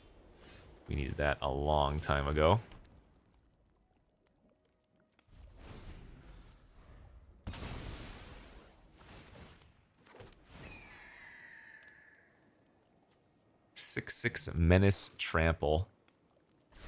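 A man talks calmly and close to a microphone, in bursts with pauses.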